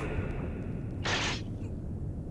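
A sword blade whooshes and strikes with a sharp hiss.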